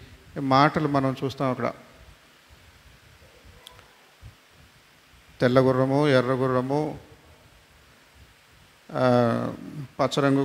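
A middle-aged man speaks into a microphone in short, measured phrases, with pauses between them.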